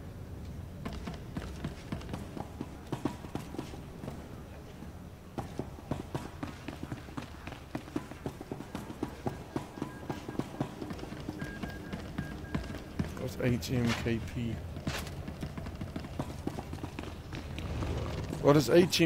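Footsteps run quickly across a hard metal floor.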